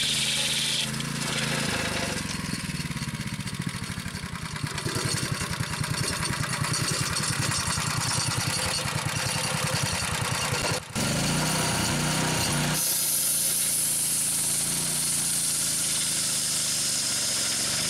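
A small petrol engine runs loudly and steadily.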